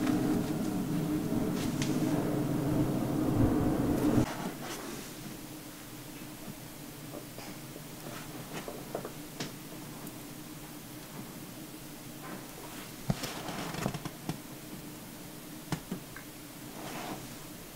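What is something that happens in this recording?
A cloth towel rustles softly as hands press and rub it.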